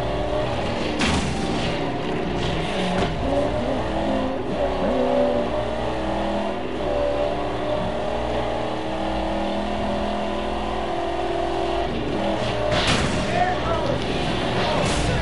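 A car engine roars at speed.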